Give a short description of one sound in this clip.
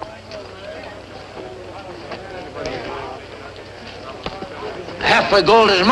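A crowd of men murmurs and talks in the background outdoors.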